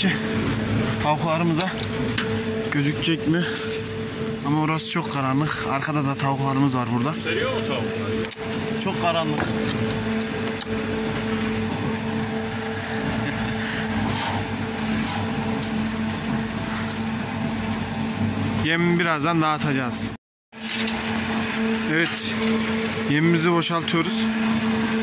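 A man talks loudly over the machine.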